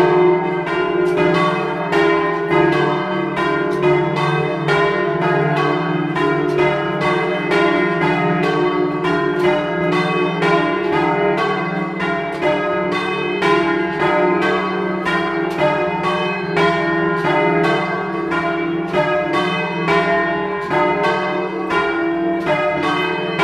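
Large bells ring loudly close overhead in a rapid, continuous peal.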